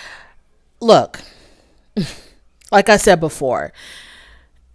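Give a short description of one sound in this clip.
A woman speaks expressively into a headset microphone, close by.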